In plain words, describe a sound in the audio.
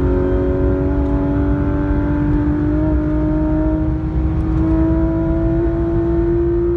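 Wind rumbles against the car as it drives fast.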